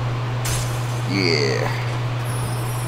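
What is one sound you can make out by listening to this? A bright, shimmering chime sweeps down in pitch.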